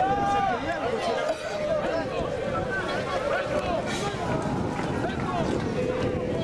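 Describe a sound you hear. A crowd of fans chants and cheers loudly outdoors.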